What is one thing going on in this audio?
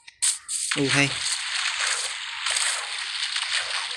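Water splashes and swishes steadily.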